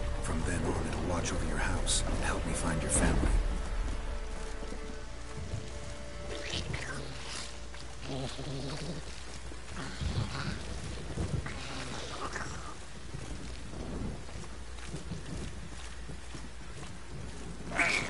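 Footsteps crunch steadily along a path.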